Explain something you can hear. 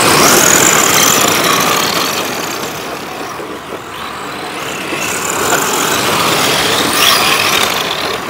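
Model car tyres skid and scrape on loose dirt.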